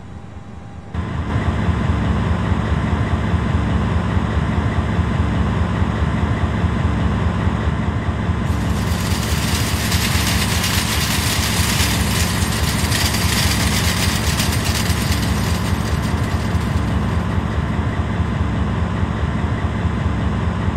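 A vehicle engine rumbles steadily and loudly up close.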